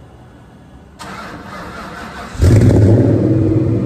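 A car engine cranks and roars to life.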